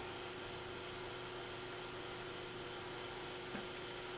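A plastic device is handled and set down with a soft knock.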